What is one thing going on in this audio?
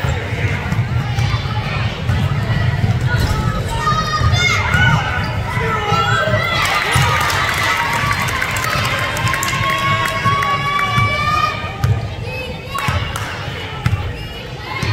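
A crowd of spectators shouts and cheers, echoing in a large hall.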